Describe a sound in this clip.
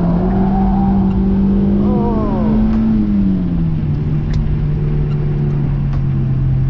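A car engine drones loudly from inside the cabin, its pitch dropping as the driver eases off.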